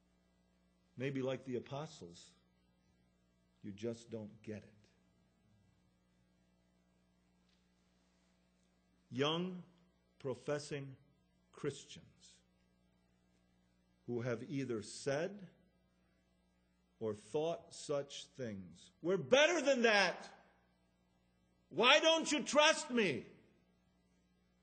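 A man speaks with animation into a microphone, in short phrases with long pauses.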